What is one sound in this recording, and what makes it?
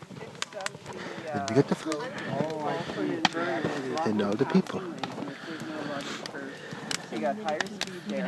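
Several adults talk with animation.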